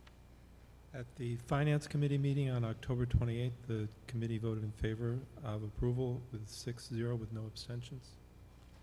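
An elderly man speaks into a microphone over a loudspeaker in a large room.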